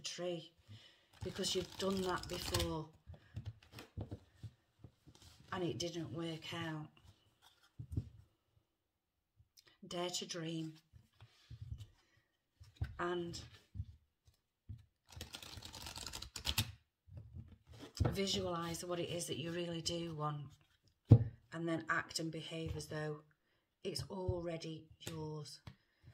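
A middle-aged woman speaks calmly and close, in short phrases with pauses.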